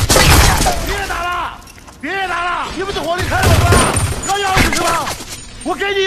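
A man shouts in panic.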